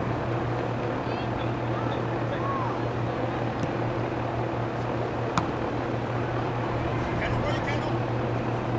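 Young women shout faintly in the distance outdoors.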